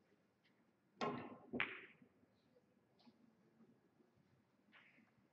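Pool balls roll and knock together on the table.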